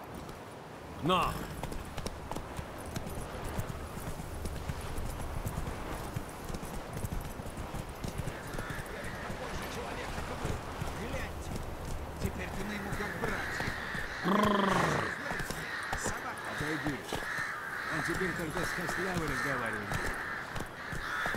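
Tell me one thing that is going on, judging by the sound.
Horse hooves thud steadily at a gallop.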